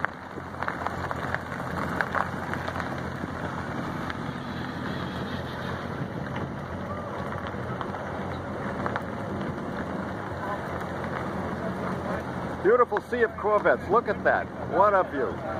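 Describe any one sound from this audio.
Sports car engines rumble low as cars roll slowly past nearby.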